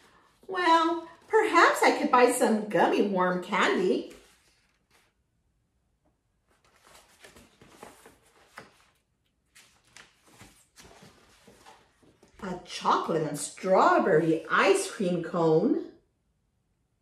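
A middle-aged woman reads aloud with animation close by.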